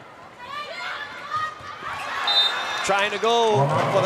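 A volleyball is struck hard.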